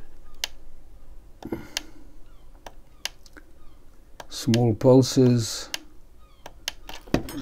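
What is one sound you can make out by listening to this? Small clicks sound as fingers press a device.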